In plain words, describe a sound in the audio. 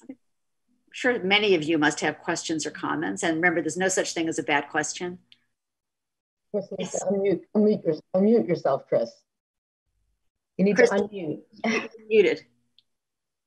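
An elderly woman speaks with animation over an online call.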